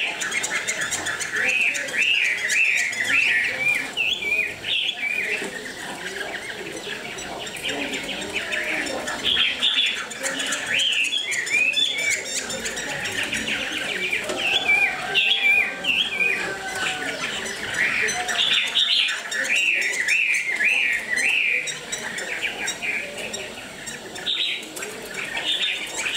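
A caged bird sings loud, bright repeated whistling phrases close by.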